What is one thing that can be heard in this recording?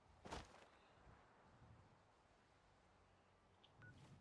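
Footsteps crunch through dry grass.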